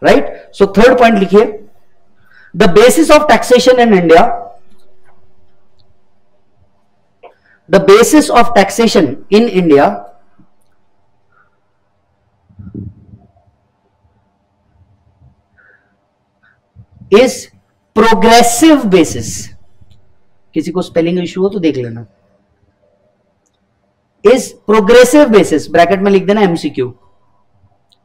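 A man speaks calmly and clearly into a close microphone, in short phrases with pauses.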